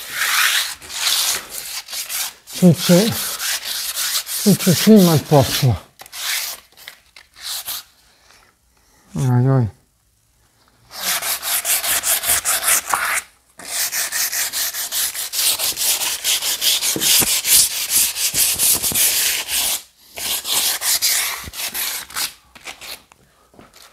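A wooden board scrapes and rubs against a door frame.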